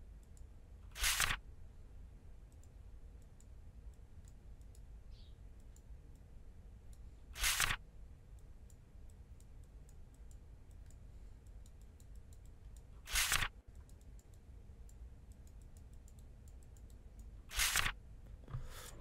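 A paper page flips over with a quick swish.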